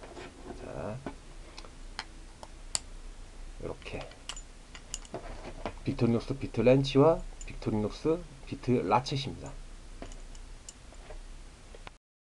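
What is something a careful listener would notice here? Small plastic and metal tool pieces click and snap together.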